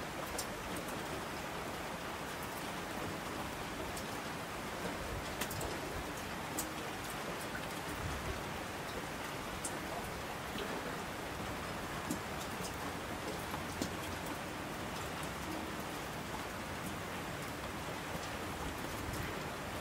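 Streams of water rush down the slopes.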